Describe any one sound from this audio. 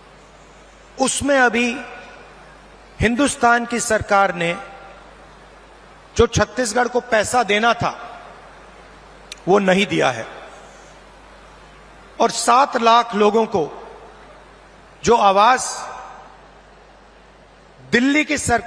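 A man speaks loudly through a microphone in short phrases, echoing outdoors, with pauses between them.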